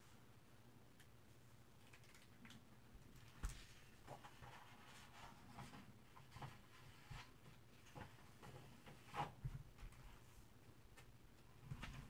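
Book pages turn with a soft papery rustle.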